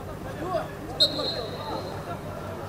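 A referee's whistle blows a short blast.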